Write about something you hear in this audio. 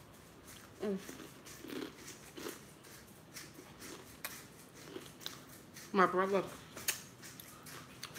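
A young woman smacks her lips while eating.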